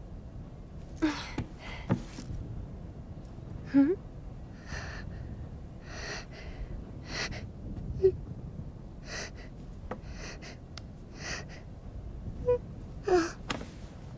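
A young woman speaks softly and kindly.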